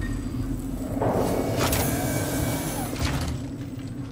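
A heavy metal door slides open with a mechanical hiss.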